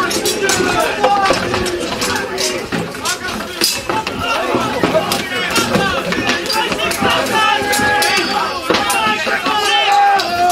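Weapons clash and knock against wooden shields.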